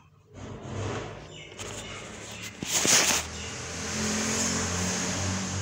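Fingers tap and rub on a plastic case.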